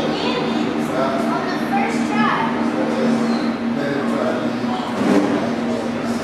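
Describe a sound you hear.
Computers hum steadily.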